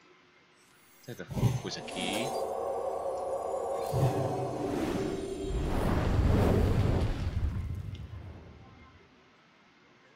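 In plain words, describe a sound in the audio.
Magical game sound effects swell, chime and crash.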